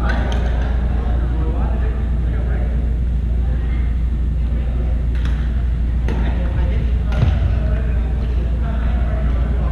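Sneakers squeak on a hardwood floor.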